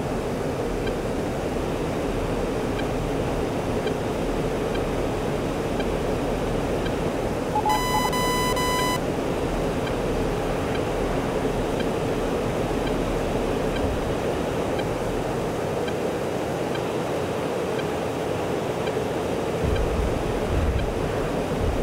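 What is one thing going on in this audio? A jet engine roars steadily in a cockpit.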